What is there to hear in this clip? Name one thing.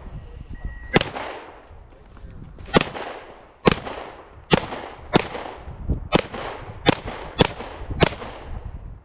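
Pistol shots ring out one after another outdoors, each echoing briefly.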